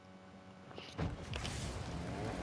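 A car engine revs and hums steadily.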